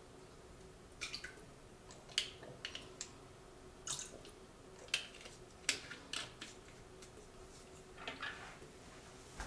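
Small glass bottles clink softly.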